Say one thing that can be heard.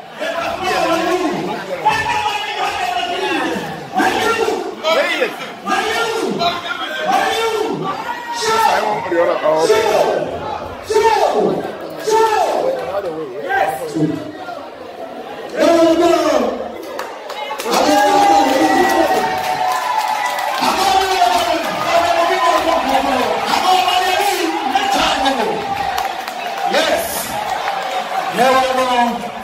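A crowd of men and women talk and cheer loudly in an echoing hall.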